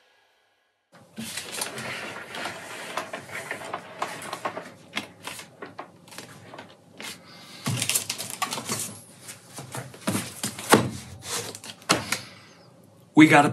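A man's hands slide and knock against a tabletop.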